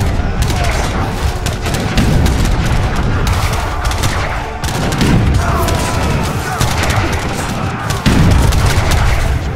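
Booming explosions rumble low.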